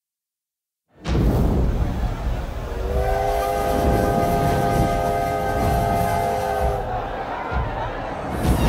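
A steam locomotive chugs and hisses.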